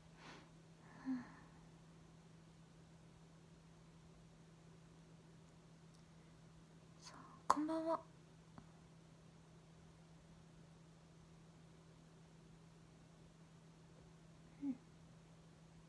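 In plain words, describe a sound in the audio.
A young woman speaks softly close to a microphone, in short bursts.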